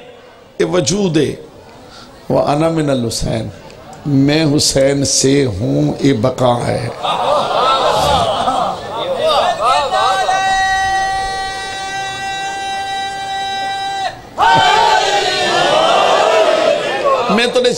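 A middle-aged man speaks with animation into a microphone, heard through a loudspeaker.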